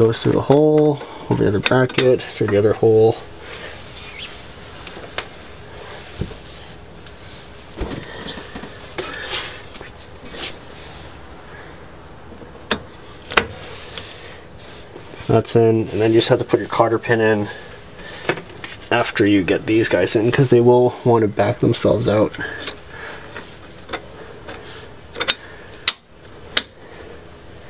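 Metal tools click and clink against a brake caliper.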